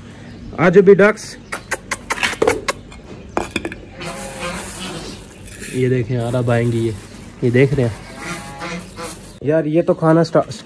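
Geese honk loudly nearby.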